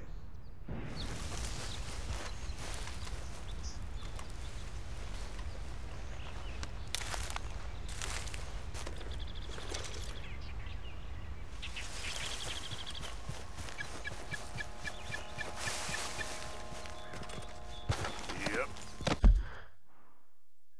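Footsteps rustle through tall grass outdoors.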